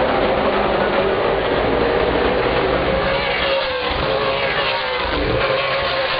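A race car's engine whines and drones as it passes close by.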